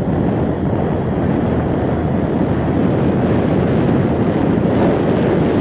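Wind rushes and buffets in a steady low rumble.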